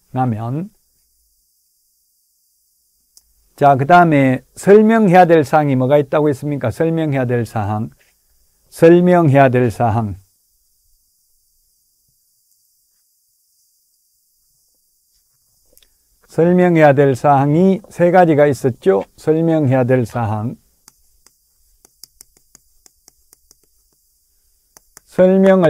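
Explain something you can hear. A middle-aged man lectures clearly into a close microphone, speaking in bursts with pauses.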